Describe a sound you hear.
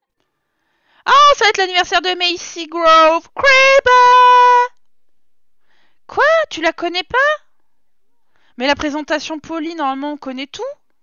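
A young woman talks animatedly close to a microphone.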